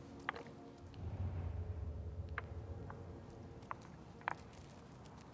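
Footsteps crunch slowly on a hard floor.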